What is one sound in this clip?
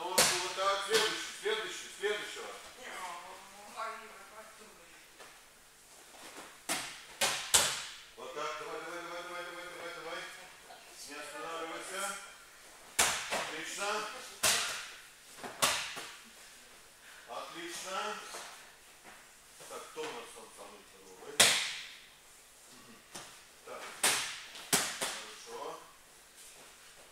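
A man speaks with animation in a large echoing hall.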